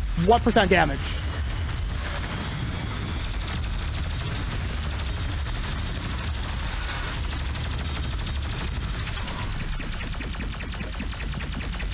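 Gunfire blasts rapidly and repeatedly.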